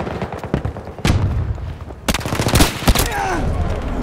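Sharp rifle shots crack loudly, one after another.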